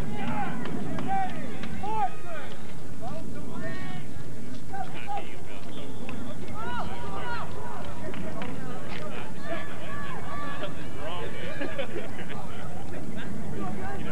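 A crowd of spectators chatters and calls out nearby, outdoors.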